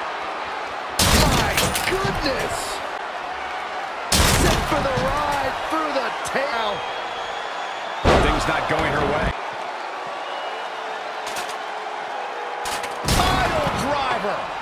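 Heavy bodies slam down hard with loud thuds.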